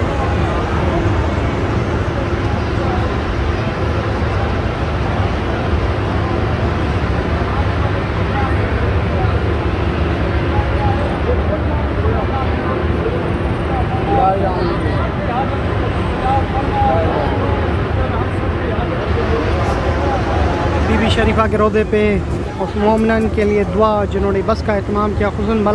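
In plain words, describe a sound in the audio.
A large crowd of men murmurs and chants in a big echoing hall.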